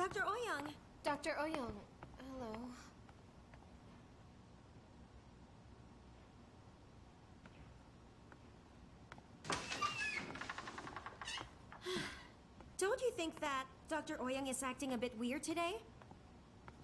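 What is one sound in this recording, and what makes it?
A young woman speaks up close in a questioning tone.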